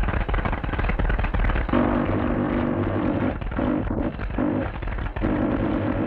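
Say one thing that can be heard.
A young man speaks with animation into a radio set.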